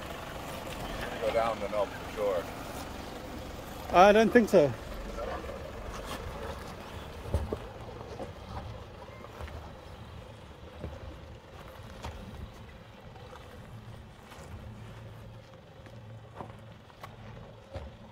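A truck engine rumbles slowly at low speed.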